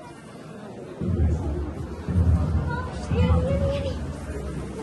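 Heavy thuds knock against wood close by.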